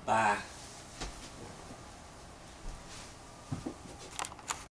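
Clothing rustles and thumps as a man gets up.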